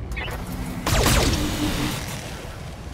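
Laser weapons fire in a loud burst of crackling energy.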